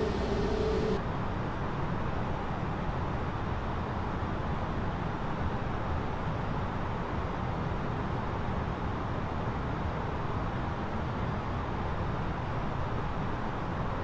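A jet airliner's engines hum low and muffled from inside the cockpit.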